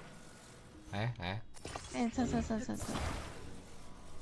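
A crackling, sparkling magic effect whooshes and hums.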